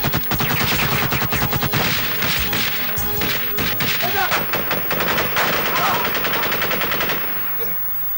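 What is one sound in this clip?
Bullets strike the ground in rapid bursts.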